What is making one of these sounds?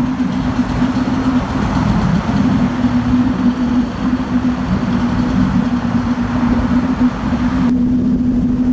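A sports car engine rumbles loudly.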